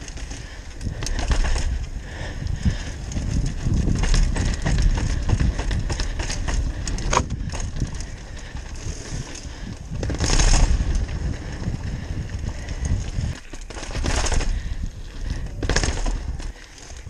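Bicycle tyres rattle and thump over paving stones and steps.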